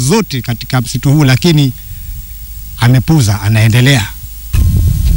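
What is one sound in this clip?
A man speaks with animation into a microphone outdoors.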